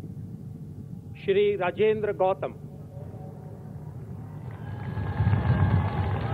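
A large outdoor crowd murmurs and cheers.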